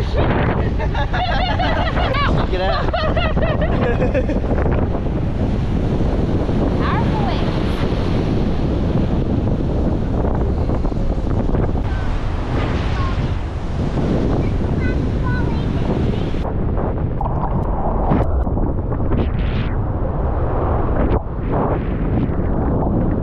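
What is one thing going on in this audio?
Waves wash and break on the shore nearby.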